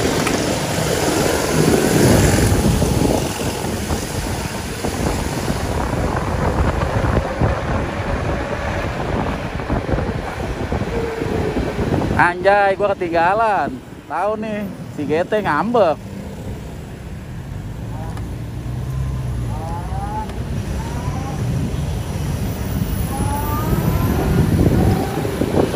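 Wind buffets loudly past.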